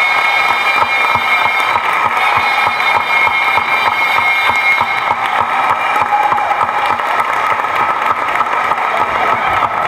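People clap their hands in a steady rhythm.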